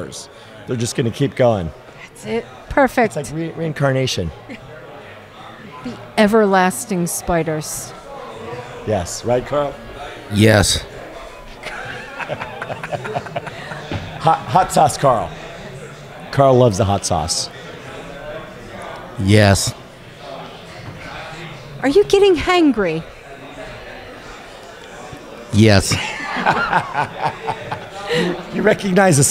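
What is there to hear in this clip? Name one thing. Men laugh heartily.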